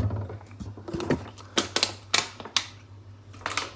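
A plastic bottle crinkles and thumps as it is handled.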